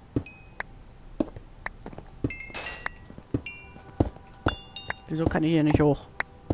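Footsteps and block knocks tap in short, sharp bursts.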